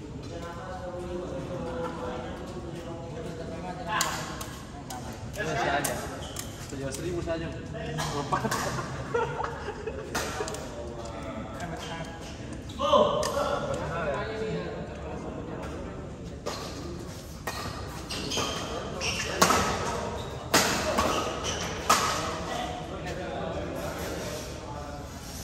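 Men talk nearby in an echoing hall.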